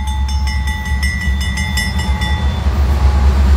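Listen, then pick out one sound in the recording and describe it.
A train horn blows loudly.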